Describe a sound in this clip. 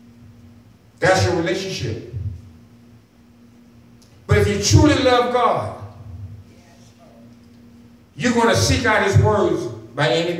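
A man preaches with emphasis into a microphone through loudspeakers, in bursts with pauses.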